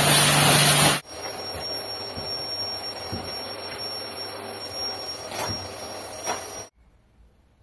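Foam padding tears as hands rip a seat cover apart.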